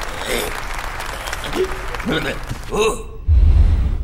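A cartoon man speaks with animation, close by.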